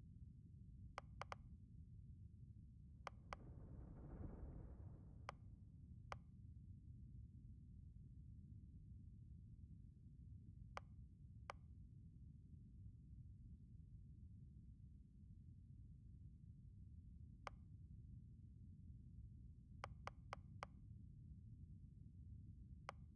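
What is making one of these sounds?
Short soft menu clicks chime now and then.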